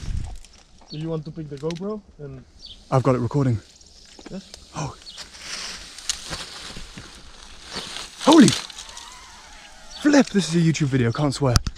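A young man talks casually, close by.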